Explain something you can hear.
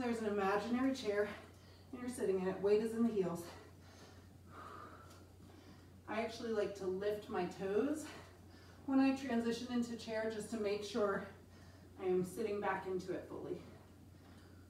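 A woman speaks calmly and clearly, close to the microphone, in short bursts with pauses.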